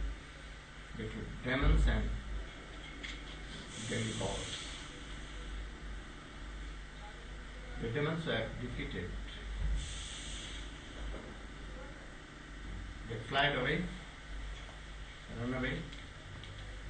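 An elderly man speaks calmly in short phrases with pauses, close by.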